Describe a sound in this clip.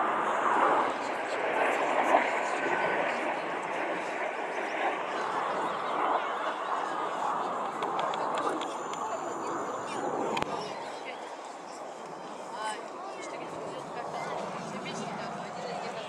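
Wind gusts steadily outdoors.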